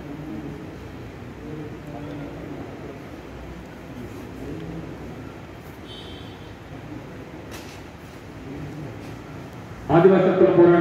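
A man speaks with animation through a loudspeaker in a large echoing hall.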